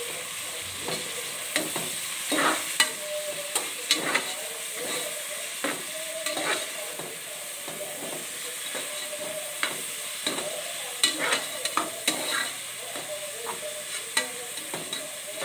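A metal spoon scrapes and clinks against the inside of a cooking pot.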